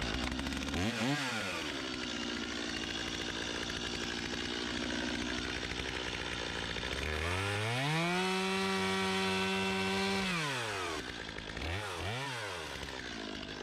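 A chainsaw revs up high, then drops back to idle.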